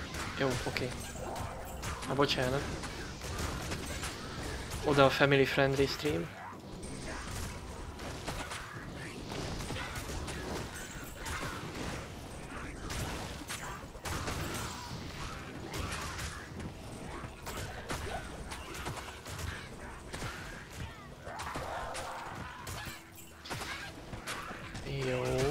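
Spells crackle and burst during a fight.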